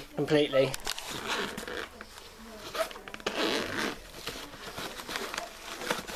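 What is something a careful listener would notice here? A fabric bag rustles as hands open it.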